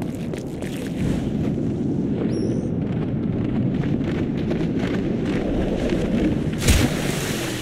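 Wind rushes past during a long fall.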